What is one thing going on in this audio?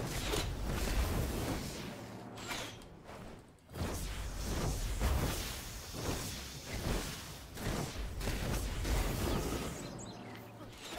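Flames roar and crackle from a blast.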